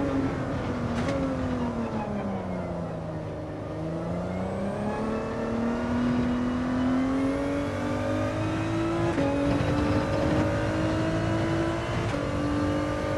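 A racing car engine shifts gears with sharp breaks in its pitch.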